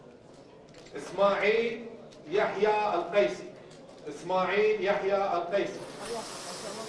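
A man reads out announcements through a microphone in a large echoing hall.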